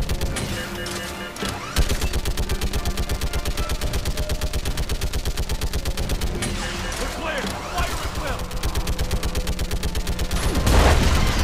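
A rapid-fire gun shoots in long, fast bursts.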